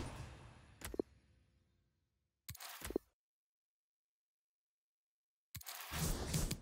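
A game menu makes short clicking sounds as selections are made.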